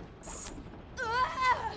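A creature lets out a wavering shriek.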